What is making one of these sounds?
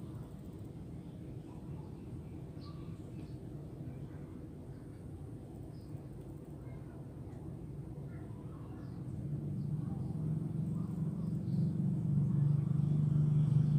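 A paintbrush brushes softly across fabric.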